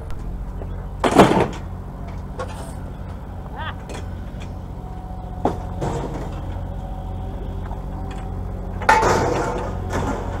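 Scrap metal clanks and rattles as it is thrown onto a pile.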